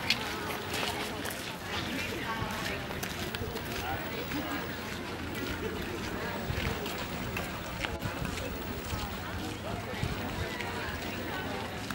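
A woman talks quietly nearby.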